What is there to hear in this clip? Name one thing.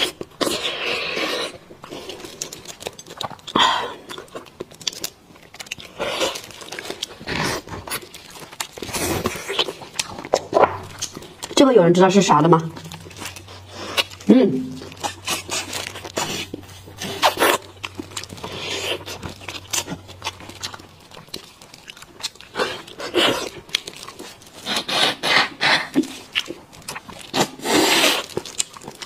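A young woman chews wetly close up.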